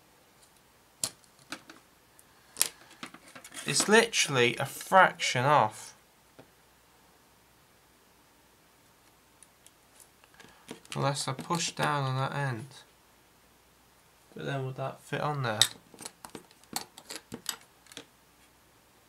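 Plastic pieces click and tap as they are handled.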